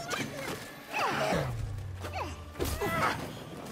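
A large beast roars.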